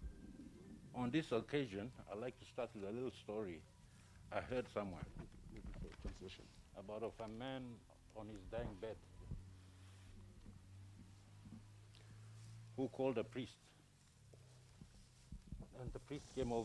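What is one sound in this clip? A man speaks slowly and solemnly into a microphone outdoors, with pauses.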